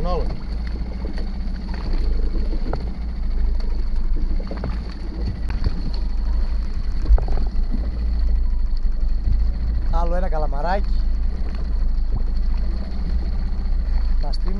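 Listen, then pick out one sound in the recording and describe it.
Waves lap against a boat's hull.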